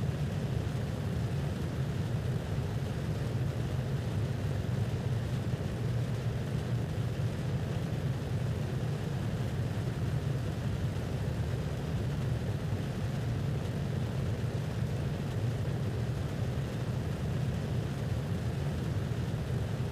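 A spacecraft's engines roar with a steady low hum.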